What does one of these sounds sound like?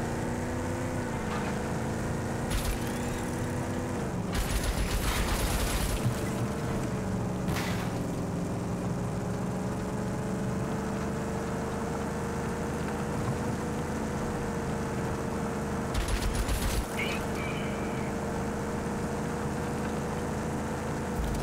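A vehicle engine roars steadily, shifting pitch as it drives.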